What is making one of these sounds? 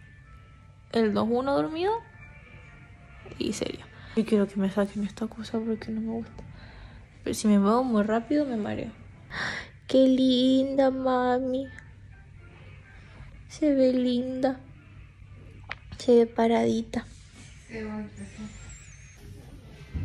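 A young woman talks close by, calmly.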